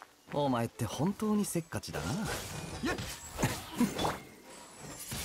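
Sword blows clash and slash in quick bursts.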